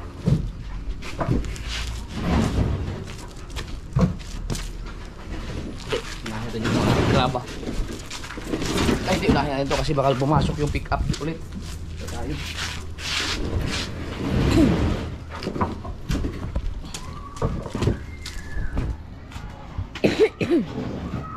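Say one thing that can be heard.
Wooden boards knock and clatter as they are moved.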